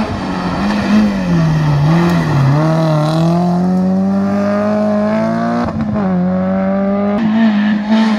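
A small hatchback rally car's engine revs hard through a hairpin, then fades as the car drives away.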